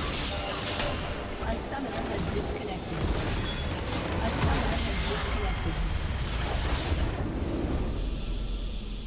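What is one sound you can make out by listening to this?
Game spells and attacks blast and crackle loudly.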